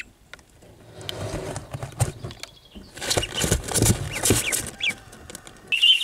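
Ducklings rustle and scratch about in a box.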